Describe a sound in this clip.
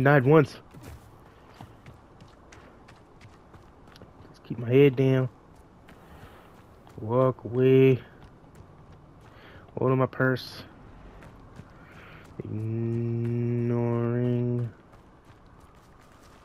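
Footsteps patter quickly on earth and stone.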